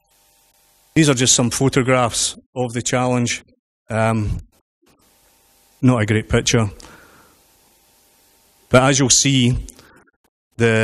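A man speaks into a microphone over loudspeakers in a large hall.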